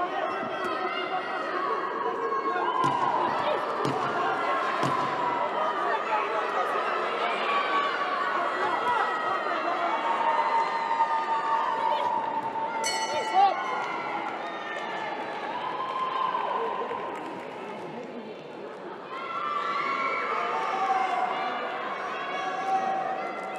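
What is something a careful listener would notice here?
A crowd cheers and chatters in a large hall.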